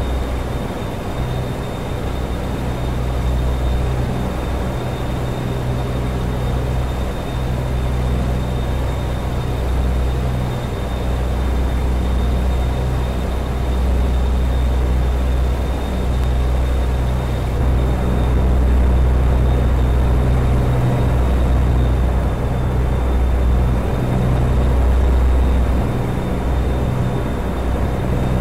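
A diesel semi-truck engine drones while cruising on a highway.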